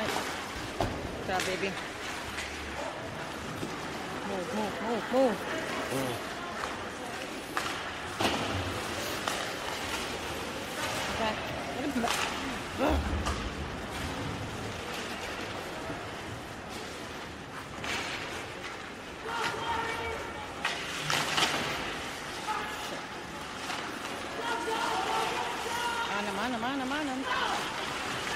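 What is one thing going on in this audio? Spectators talk and call out nearby.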